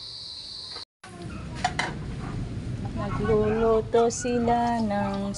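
Water boils and bubbles in a pot.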